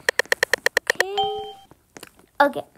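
A game sounds a short chime.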